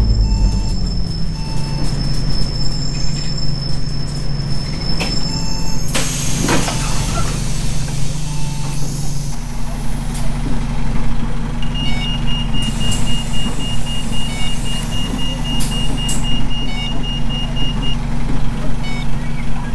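A bus engine idles steadily at a stop.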